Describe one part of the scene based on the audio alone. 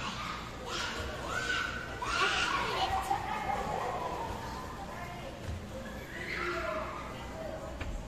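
A young girl talks cheerfully close by.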